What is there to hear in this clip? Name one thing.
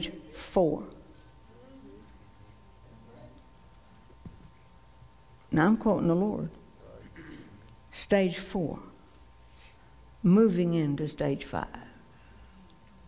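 A middle-aged woman speaks with animation into a microphone, in bursts with pauses.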